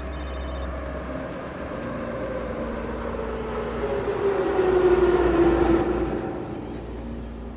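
A subway train rolls in with squealing brakes that fall in pitch.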